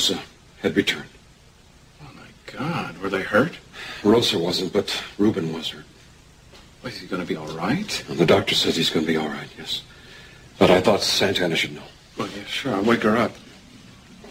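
A young man speaks with concern, close by.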